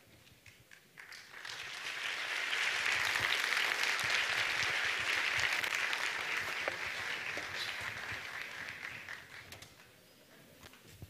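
An audience applauds loudly in a large hall, then the applause fades out.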